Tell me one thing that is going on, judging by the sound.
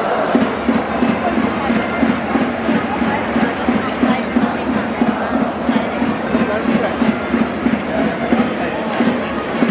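A large stadium crowd chants and cheers loudly.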